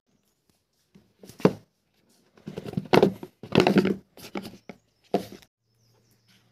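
A cardboard box lid slides off and rustles in someone's hands.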